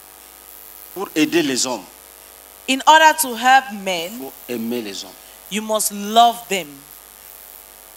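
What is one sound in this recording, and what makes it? A woman speaks with animation through a microphone over loudspeakers.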